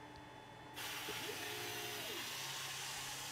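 A laser engraver's stepper motors whine as the head moves into place.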